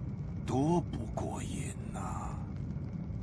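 A man speaks with a sly laugh.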